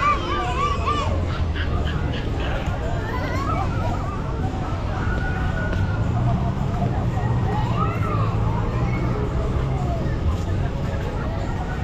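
A crowd of men and women chatters at a distance outdoors.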